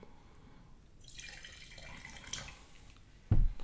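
Wine pours and splashes into a glass.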